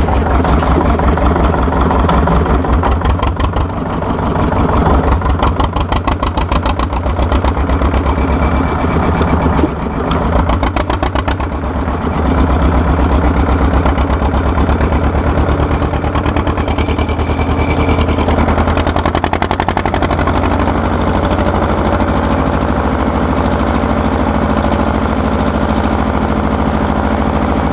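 An old tractor engine chugs loudly and steadily up close.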